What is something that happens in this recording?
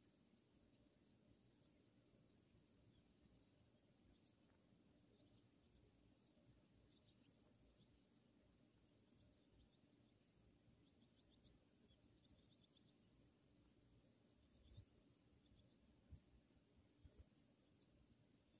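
An outdoor air conditioning unit hums steadily with a low drone.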